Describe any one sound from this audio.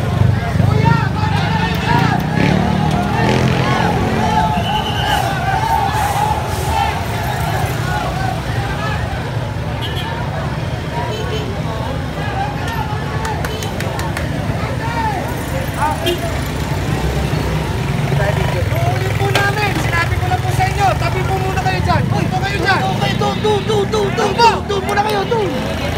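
A crowd of people chatter loudly all around, outdoors.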